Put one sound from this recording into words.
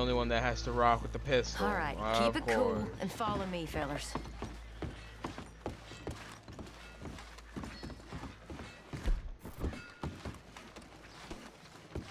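Boots thud on wooden boards as several people walk.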